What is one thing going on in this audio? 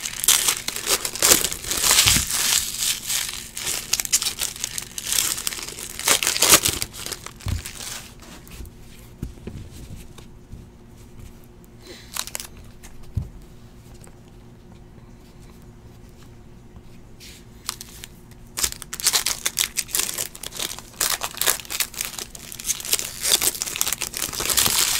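A plastic card wrapper crinkles and rustles as it is torn open.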